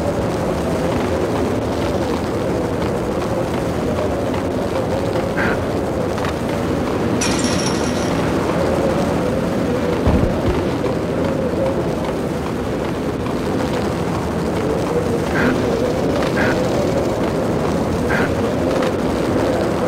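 Footsteps run on a concrete floor.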